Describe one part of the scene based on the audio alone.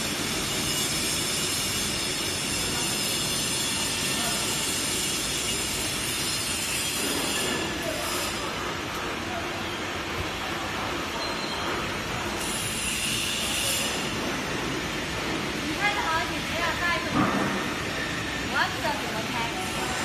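A paper-processing machine hums and whirs steadily as rollers turn.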